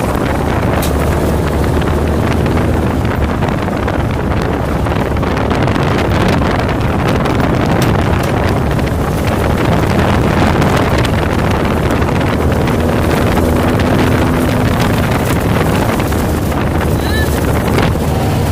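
Tyres crunch and rattle over a rough gravel track.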